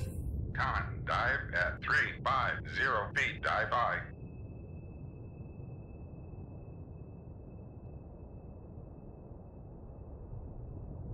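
A submarine's engine hums with a deep, steady underwater rumble.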